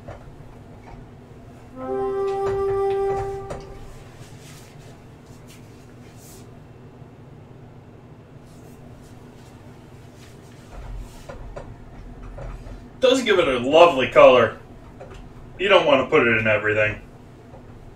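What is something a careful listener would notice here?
A spoon scrapes and stirs a thick sauce in a metal pan.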